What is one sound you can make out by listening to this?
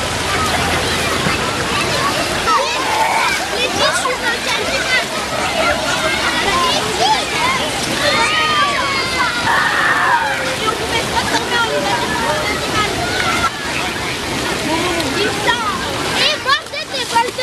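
Many children shout and squeal around a swimming pool.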